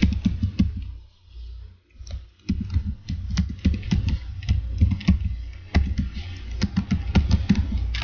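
Keys click quickly on a computer keyboard.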